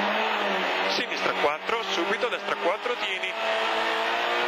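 A rally car engine crackles and blips as it downshifts under braking.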